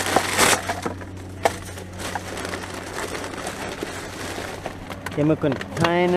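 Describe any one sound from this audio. Paper and plastic rustle and crinkle as gloved hands dig through rubbish.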